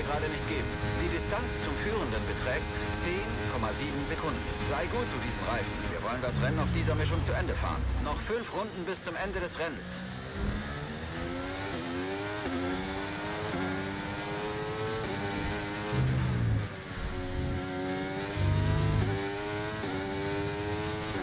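A racing car engine whines and rises in pitch through gear changes.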